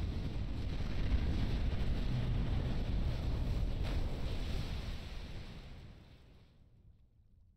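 A huge explosion booms and rumbles, then slowly dies away.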